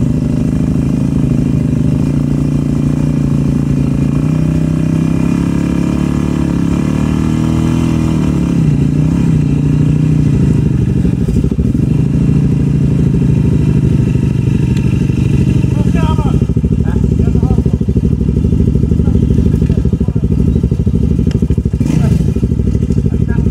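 An ATV engine idles and revs loudly close by.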